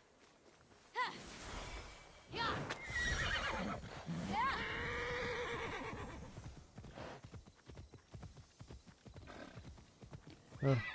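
A horse gallops with thudding hooves on soft ground.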